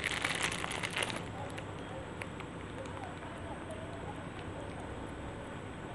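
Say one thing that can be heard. Plastic wrap crinkles close by.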